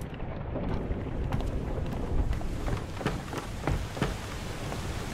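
Footsteps thud on creaking wooden steps.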